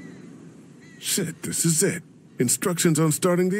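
A second man speaks in a shaken voice, close by.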